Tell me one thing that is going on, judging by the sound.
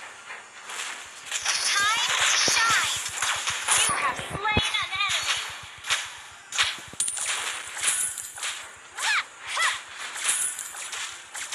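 Video game spell and weapon effects clash and burst rapidly.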